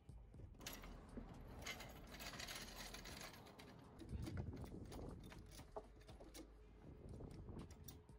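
A car jack clicks and rattles as it is positioned and pumped.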